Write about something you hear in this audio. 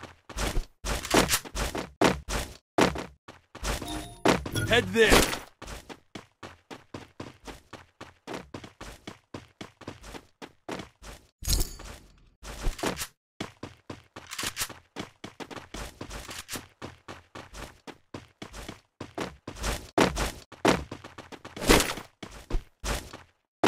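Footsteps patter in quick succession.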